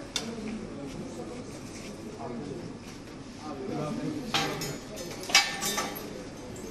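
A stretcher knocks and clatters as it bumps through a doorway.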